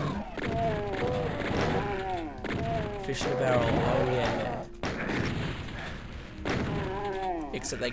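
A shotgun fires repeatedly in loud, sharp blasts.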